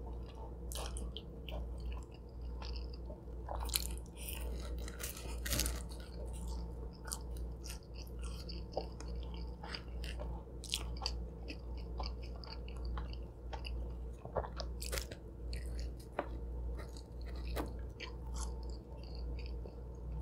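A young woman chews food loudly and wetly close to a microphone.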